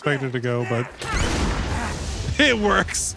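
A bomb explodes with a deep rumble.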